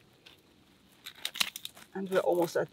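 Gloved hands scrape and rustle in dry soil and leaves.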